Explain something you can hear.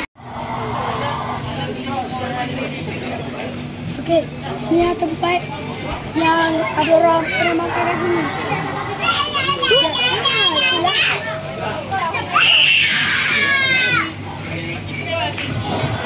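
A crowd of children and adults chatters nearby outdoors.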